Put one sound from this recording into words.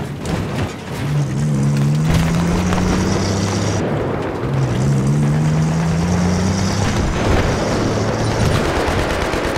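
An engine hums and revs as a vehicle drives over rough ground.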